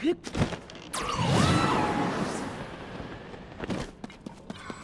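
A ghostly spirit shrieks and bursts with a whooshing rush.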